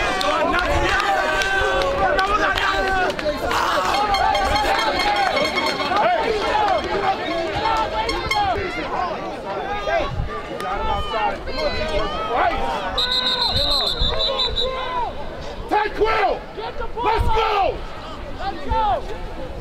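Young men shout and whoop close by.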